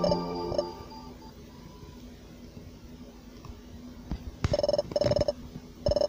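Chiptune game music plays.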